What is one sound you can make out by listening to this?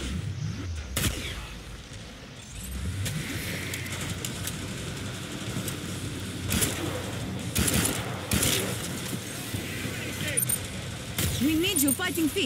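Guns fire in short, sharp bursts.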